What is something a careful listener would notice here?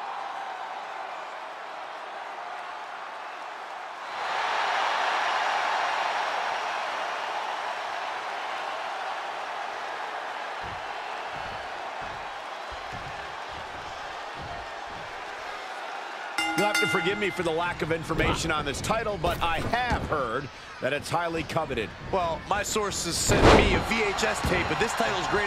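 A large crowd cheers and roars in a big arena, swelling loudly at times.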